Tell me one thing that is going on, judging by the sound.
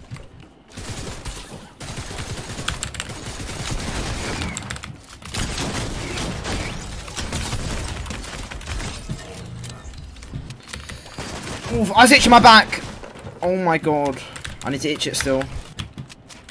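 Wooden panels clatter as they are quickly built in a game.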